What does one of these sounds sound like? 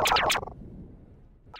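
A gun fires with a loud blast.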